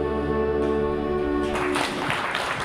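A band plays a lively tune and stops.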